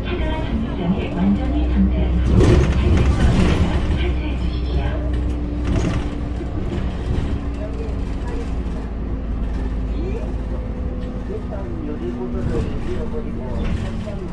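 A bus rattles and clatters as it rolls over the road.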